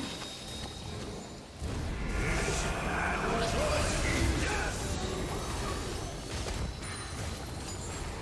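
Short combat hits thud and clash.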